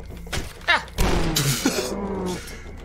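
Wooden crates smash and splinter.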